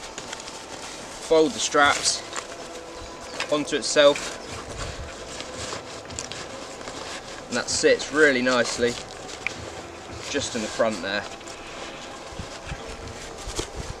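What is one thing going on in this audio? Fabric rustles as a backpack is packed.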